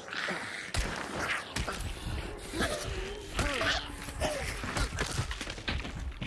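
Heavy blows thud against flesh.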